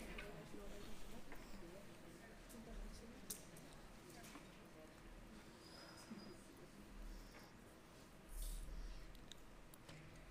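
A young woman speaks through a microphone in a large hall.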